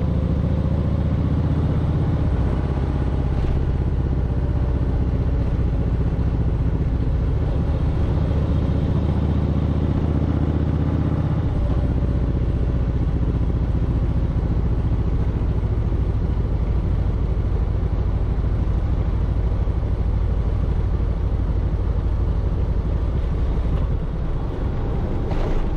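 Wind buffets loudly as the motorcycle rides.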